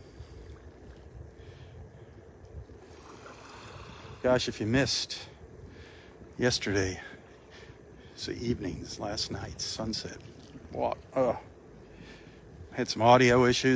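Small waves lap softly at the water's edge.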